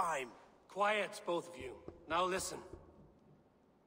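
A man speaks firmly in a deep voice, close by.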